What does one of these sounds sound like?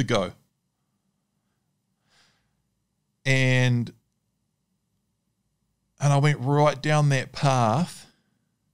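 A man speaks into a close microphone in short, lively bursts with pauses between them.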